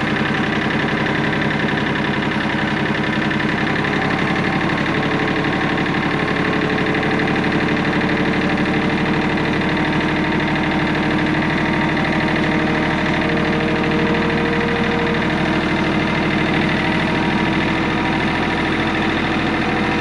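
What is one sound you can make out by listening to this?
A tractor engine chugs loudly and steadily close by.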